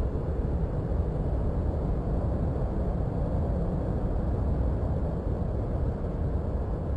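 A jet engine rumbles steadily as the aircraft rolls along the runway.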